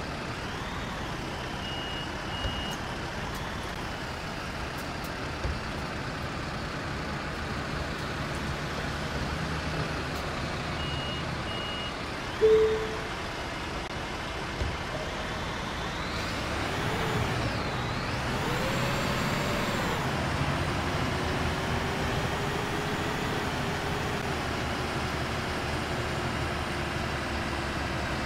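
A bus engine hums steadily as a bus drives along a road.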